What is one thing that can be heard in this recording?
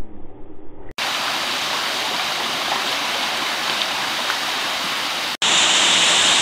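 A shallow stream burbles steadily over rocks.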